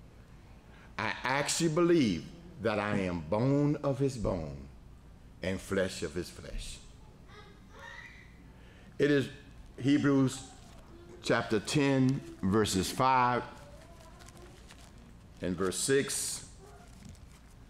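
A middle-aged man speaks calmly and clearly into a microphone, in short bursts with pauses.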